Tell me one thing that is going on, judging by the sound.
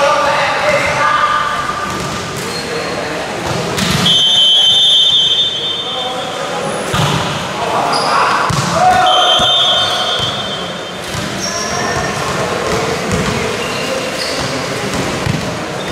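A volleyball is struck with dull thuds in an echoing hall.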